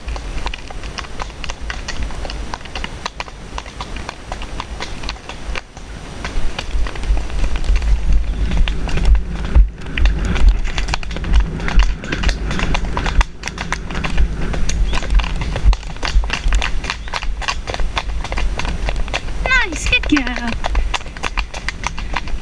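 Horse hooves thud and clop steadily on a dirt trail.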